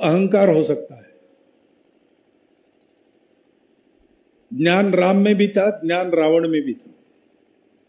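An elderly man speaks slowly and forcefully into a microphone.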